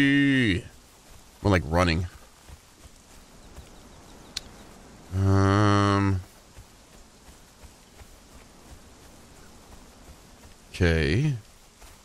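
Footsteps rustle softly through grass.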